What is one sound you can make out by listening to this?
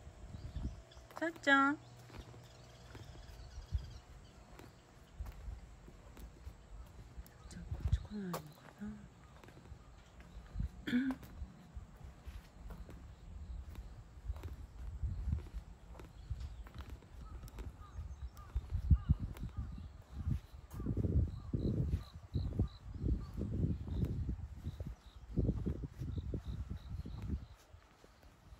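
Footsteps scuff slowly along pavement outdoors.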